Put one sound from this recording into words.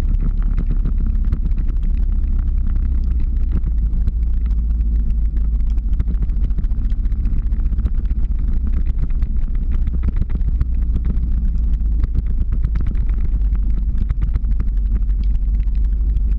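Skateboard wheels roll and rattle steadily on asphalt.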